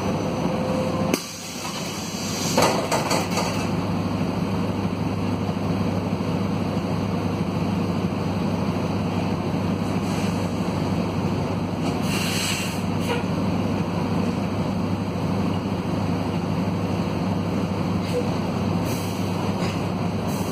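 A diesel minibus engine drones, heard from inside the cabin.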